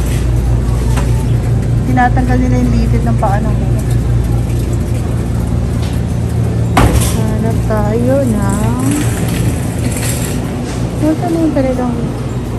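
A refrigerator hums steadily and low nearby.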